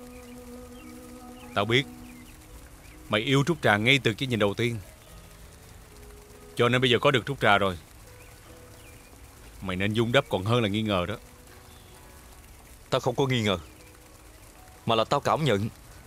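A man speaks in a low, calm voice nearby.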